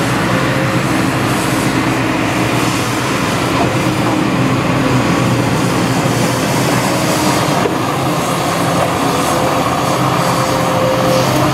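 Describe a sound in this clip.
Hydraulics whine as an excavator arm swings.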